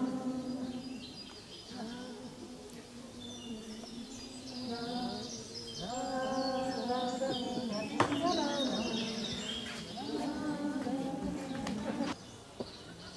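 A woman sings with animation close by.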